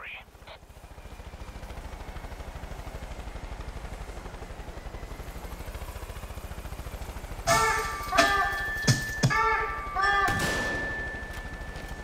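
A helicopter's rotor thumps steadily overhead.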